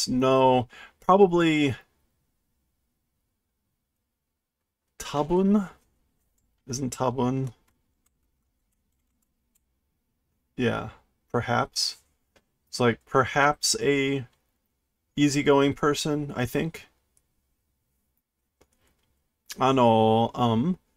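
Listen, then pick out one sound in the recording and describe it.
A middle-aged man talks calmly into a close microphone, in short bursts with pauses.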